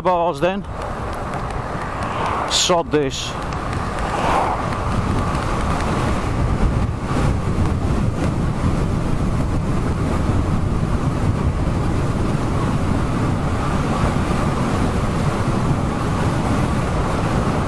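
Bicycle tyres roll and hum on a paved road.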